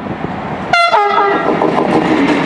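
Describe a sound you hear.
A train sounds a short horn blast up close.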